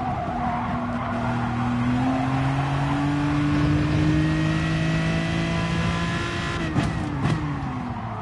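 A racing car engine revs high, climbs steadily in pitch, then drops.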